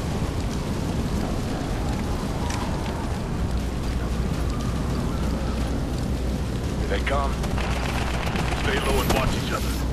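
Boots crunch on dry ground as soldiers walk.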